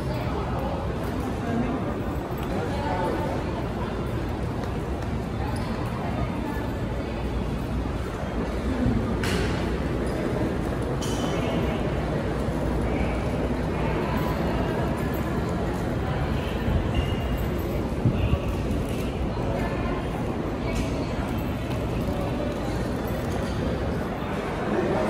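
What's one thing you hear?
Suitcase wheels roll and rattle over a hard floor.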